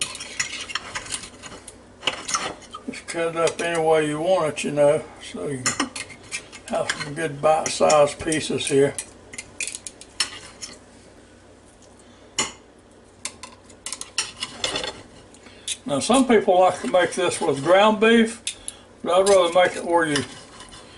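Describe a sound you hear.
A knife scrapes and taps against a plate.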